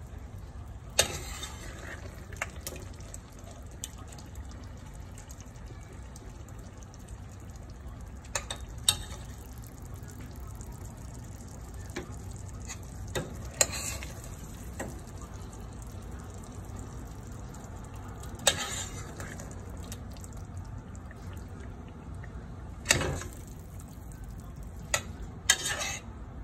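A metal spoon clinks and scrapes against a steel pot.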